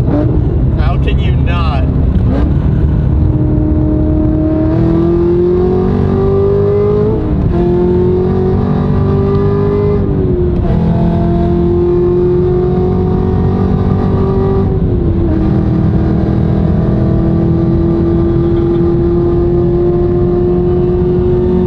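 A car engine roars loudly, climbing in pitch and dropping at each gear change.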